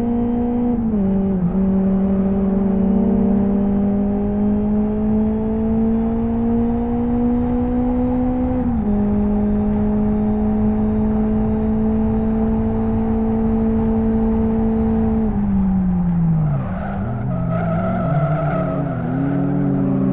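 A racing car engine drones loudly, rising in pitch as it speeds up and dropping with each gear change.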